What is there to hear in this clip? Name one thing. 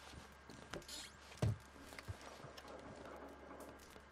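A wooden chest lid creaks open.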